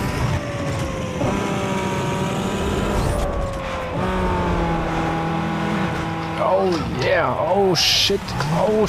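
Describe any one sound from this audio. A racing car engine roars at high speed, with its pitch jumping at each gear change.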